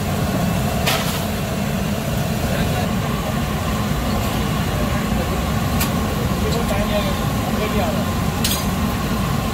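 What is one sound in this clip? A metal ladle scrapes and clinks against a large iron pan.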